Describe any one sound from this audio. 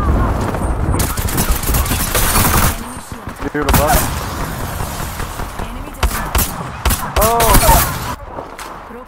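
Video game gunfire rattles in bursts.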